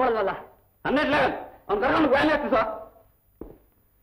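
A man speaks loudly and with emotion, close by.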